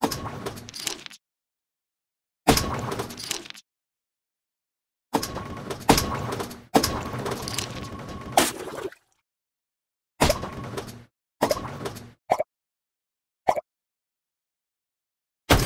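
Game blocks burst with loud cartoon blasts and sparkling pops.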